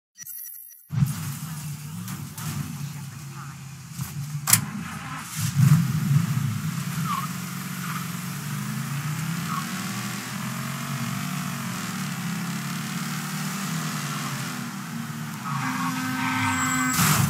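A car engine hums and revs as the car drives along a street.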